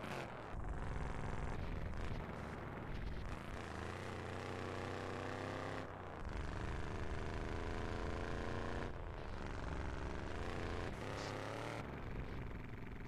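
An engine roars and revs.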